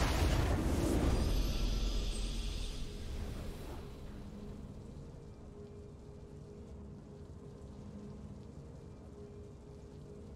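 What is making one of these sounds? A triumphant game fanfare plays softly.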